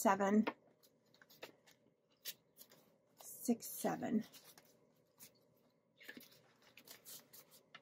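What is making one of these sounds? Paper banknotes crinkle and rustle as they are counted.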